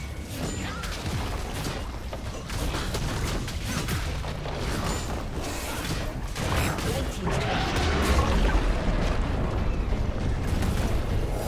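Game spells crackle and blast in a fight.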